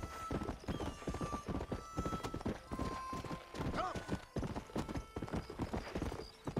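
Horse hooves pound rhythmically on a dirt path at a gallop.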